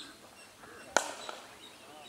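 A bat strikes a cricket ball with a sharp crack.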